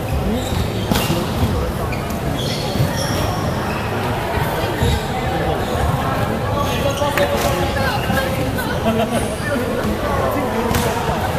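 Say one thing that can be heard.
A volleyball thumps against hands.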